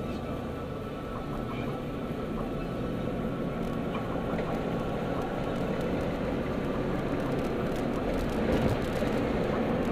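Tyres roll on the road with a steady rumble.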